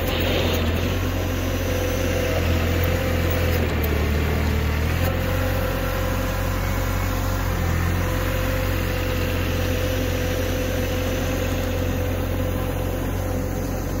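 A plow blade scrapes and pushes snow.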